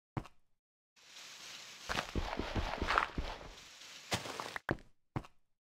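Dirt crunches as blocks are dug out.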